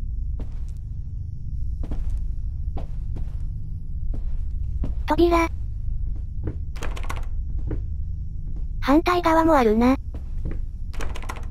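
Footsteps thud slowly.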